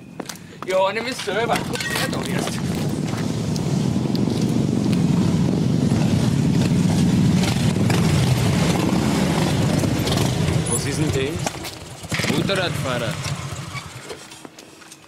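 Several motorcycle engines rumble and idle loudly.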